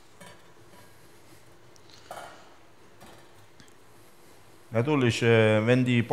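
A metal spatula scrapes against a metal tray.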